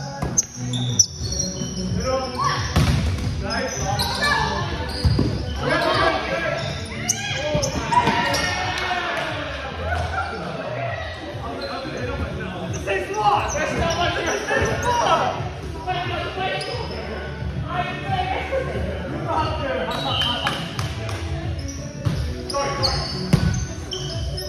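A volleyball thumps off players' arms and hands.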